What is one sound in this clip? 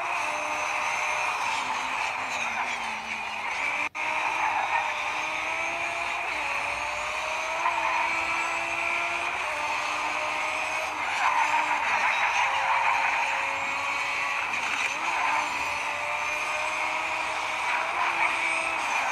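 A racing car engine roars, rising in pitch and dropping back at each gear change.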